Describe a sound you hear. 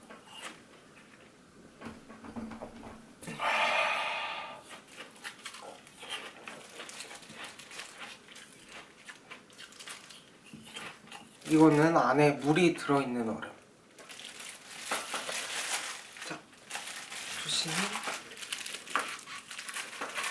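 Plastic gloves rustle and crinkle.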